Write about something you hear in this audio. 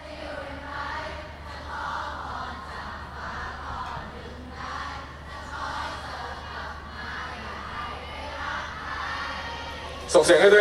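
A live band plays electric guitars, bass and keyboard, heard from among the audience.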